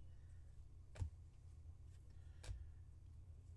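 Stiff trading cards slide and tap against each other in a hand.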